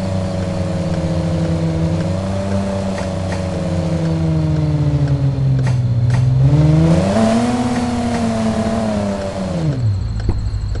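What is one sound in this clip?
A car engine hums and rises and falls in pitch as the car drives.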